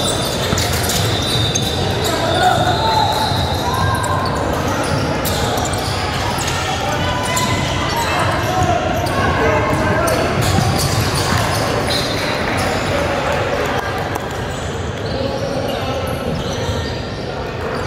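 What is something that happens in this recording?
A basketball bounces on the floor, echoing in a large hall.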